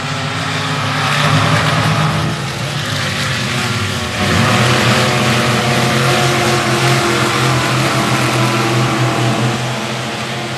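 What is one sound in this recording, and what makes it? Race car engines rev up and down as cars pass close by.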